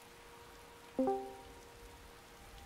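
A short electronic chime sounds as a game menu closes.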